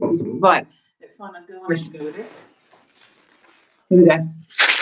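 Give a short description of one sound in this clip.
Cardboard and packing straw rustle.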